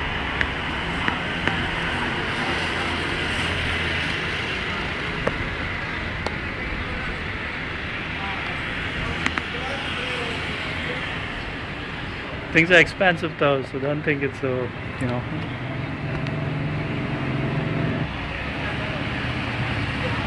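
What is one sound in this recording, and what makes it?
Motorcycle engines hum as they ride along the street below.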